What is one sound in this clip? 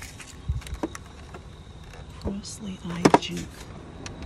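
A hand taps and rubs a hard plastic casing.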